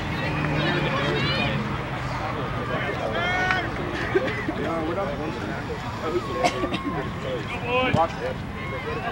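Young women shout to one another across an open field.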